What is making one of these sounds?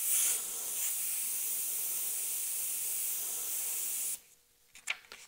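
An airbrush sprays with a steady airy hiss, then stops.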